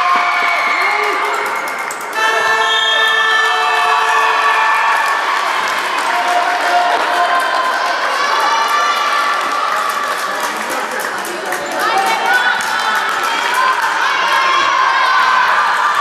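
Young women call out to each other across the hall.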